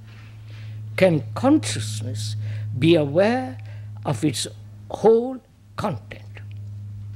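An elderly man reads aloud calmly into a microphone.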